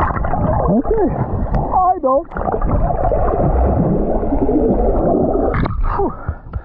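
Water splashes close by.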